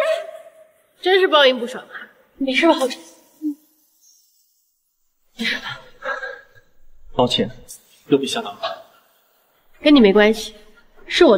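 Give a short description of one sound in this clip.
A young woman speaks calmly and with mild scorn, close by.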